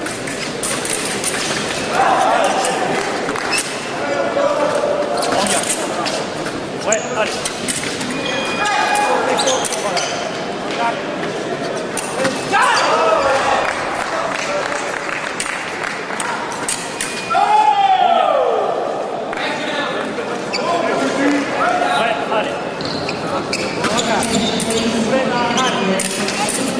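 Fencing blades clash and click.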